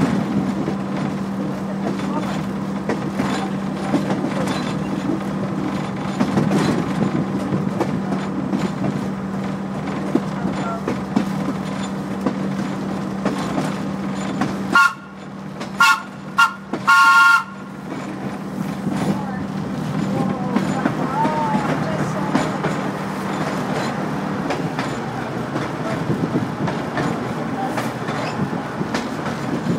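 A train engine rumbles steadily as the train rolls along the rails.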